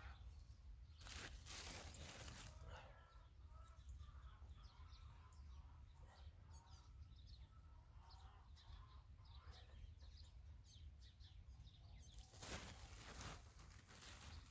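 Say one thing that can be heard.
A plastic sack rustles.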